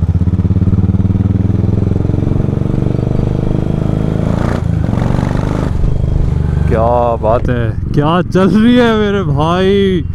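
A motorcycle engine thumps steadily up close as the bike rides along.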